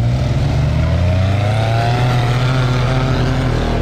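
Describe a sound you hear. Tyres crunch over muddy gravel.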